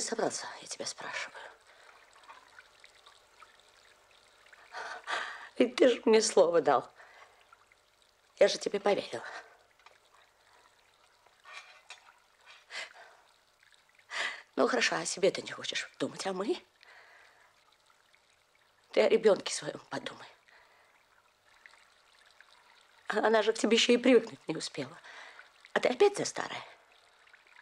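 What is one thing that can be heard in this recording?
A middle-aged woman speaks close by in short, pleading bursts with long pauses between them.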